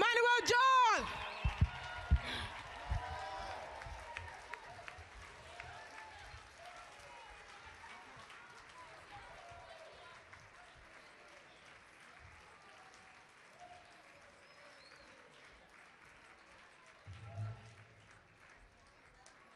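A crowd cheers and chatters in a large hall.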